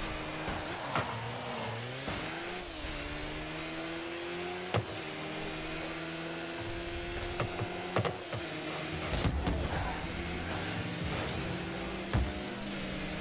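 A ball thumps as a car hits it.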